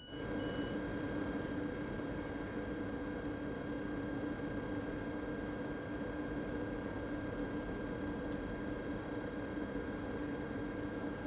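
A train's electric motors hum steadily while it stands idling.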